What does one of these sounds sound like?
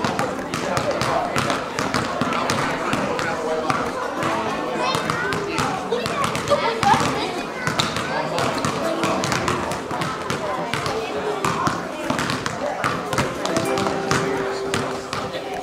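Basketballs bounce on a hard floor in a large echoing gym.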